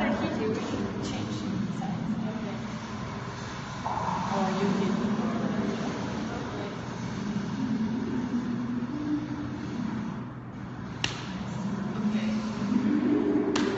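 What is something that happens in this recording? A woman talks calmly and closely.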